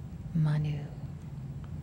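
A middle-aged woman speaks a short phrase calmly into a microphone.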